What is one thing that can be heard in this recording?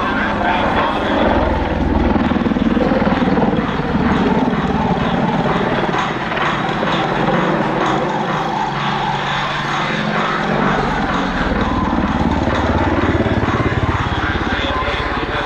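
A helicopter's rotor blades thump rapidly overhead.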